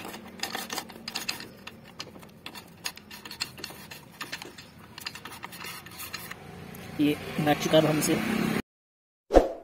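Metal parts click and tap on an engine.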